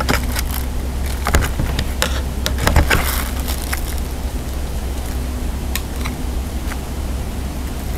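A knife taps and scrapes on a plate.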